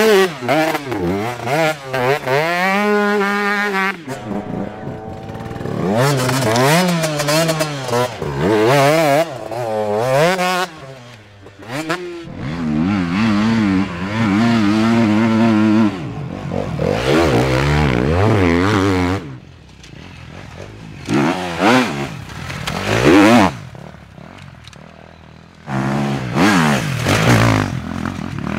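A motorcycle engine revs hard, roaring up and down in pitch.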